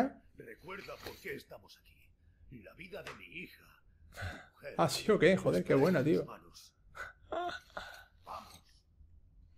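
An older man speaks urgently in a gruff voice.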